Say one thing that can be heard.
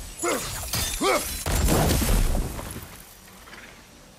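A magical blast bursts with a deep, rumbling boom.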